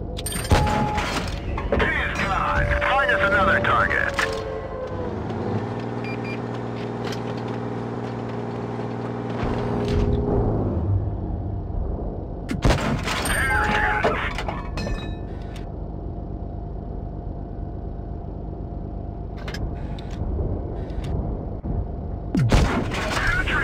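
Tank cannons fire with loud booming blasts.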